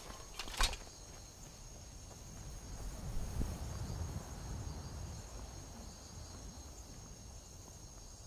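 Heavy footsteps crunch over stony ground.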